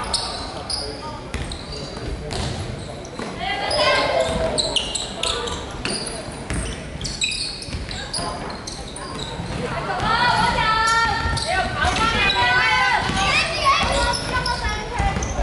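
A basketball bounces on the floor with hollow thuds.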